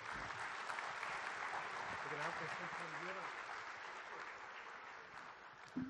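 A large audience applauds, then the clapping slowly fades.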